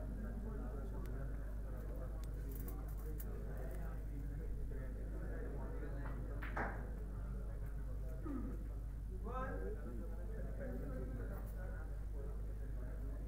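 A crowd murmurs quietly nearby.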